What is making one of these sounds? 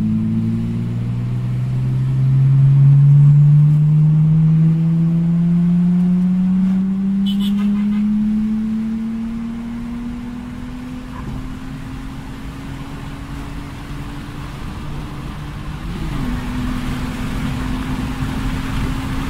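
A car engine hums and rises steadily in pitch as the car speeds up.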